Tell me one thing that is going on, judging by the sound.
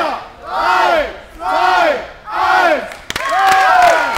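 A crowd chants loudly in rhythm in a large echoing hall.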